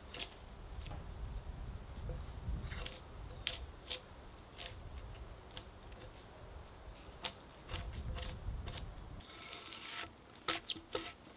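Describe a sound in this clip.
A drawknife scrapes and peels bark from a log.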